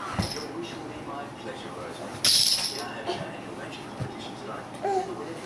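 A baby babbles softly.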